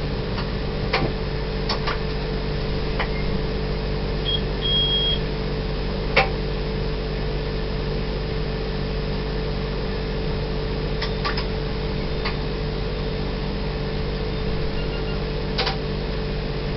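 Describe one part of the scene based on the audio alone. Train wheels click over rail joints now and then.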